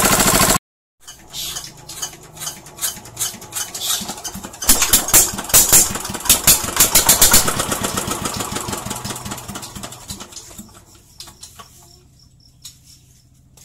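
Metal tools clink and knock against a small engine.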